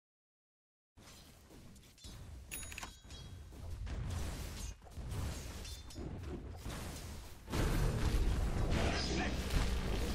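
Video game spells and blows clash in a fight.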